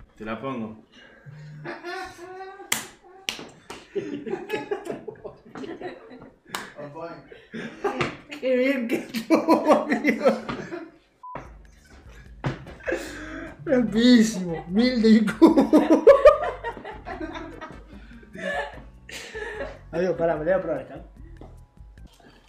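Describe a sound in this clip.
A man laughs and talks nearby.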